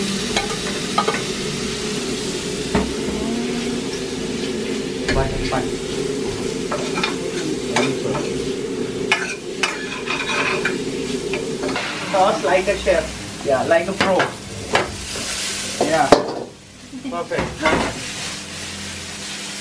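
A metal spatula scrapes and clinks against a frying pan.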